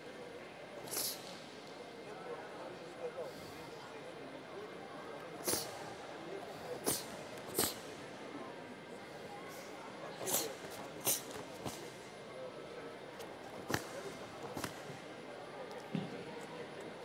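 A karate uniform snaps sharply with quick punches and kicks.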